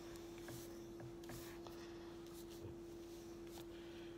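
Fabric rustles as hands adjust a knitted garment.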